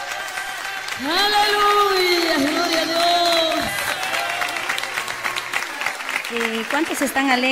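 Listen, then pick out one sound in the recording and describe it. A woman sings with feeling.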